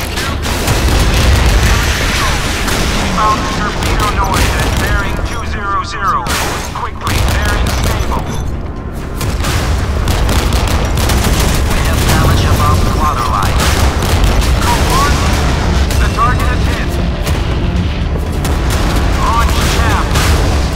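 Shells explode with heavy blasts.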